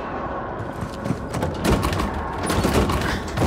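A metal door handle rattles and clicks.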